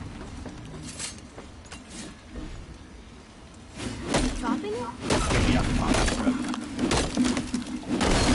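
Heavy blows crash against stone.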